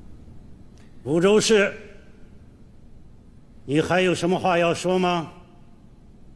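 An elderly man speaks loudly and sternly.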